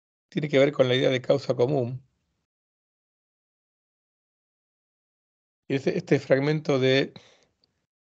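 A middle-aged man lectures calmly over an online call.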